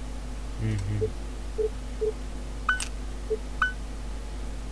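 Short electronic blips and clicks sound as a game menu is used.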